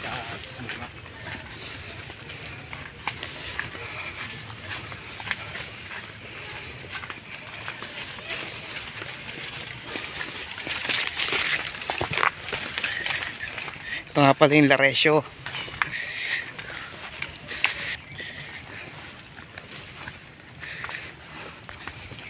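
Leafy branches rustle and swish as a person pushes past.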